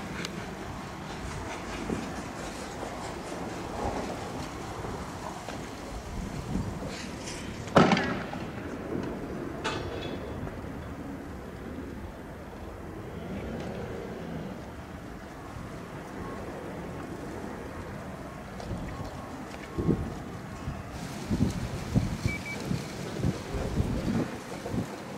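Fireworks bang and crackle outdoors, sharp and loud.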